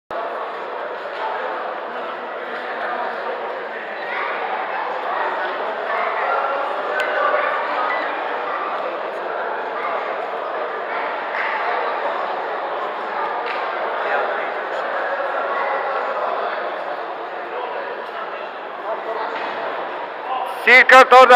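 Shoes scuff and thump on a wrestling mat.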